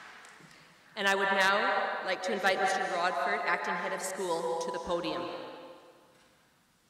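A group of children sings together in a large hall.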